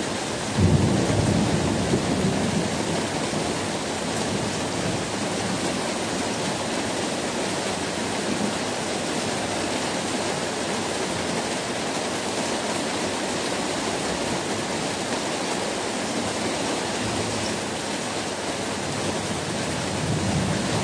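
Rain patters steadily on a plastic roof outdoors.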